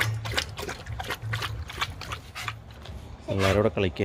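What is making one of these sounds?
A dog laps water from a metal bowl.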